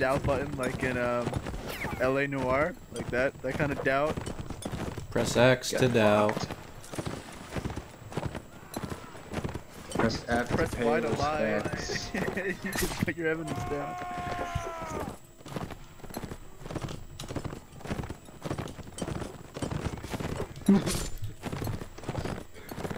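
Horses gallop with drumming hooves.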